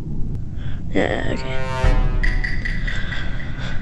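A dramatic game jingle swells up and rings out.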